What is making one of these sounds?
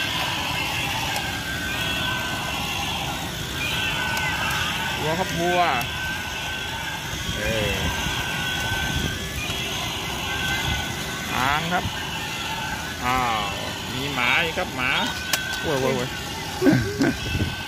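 Toy motors whir and rattle as the toys walk.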